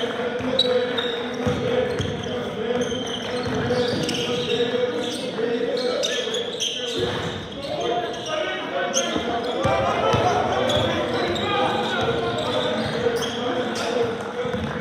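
Players and onlookers call out in a large echoing gym.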